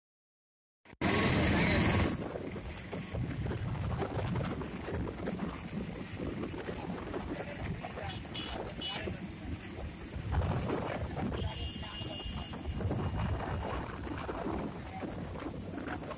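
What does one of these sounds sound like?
Wind rushes past an open vehicle.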